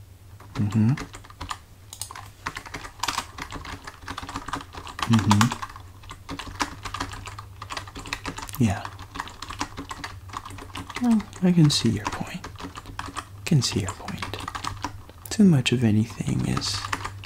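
Fingers type on a computer keyboard.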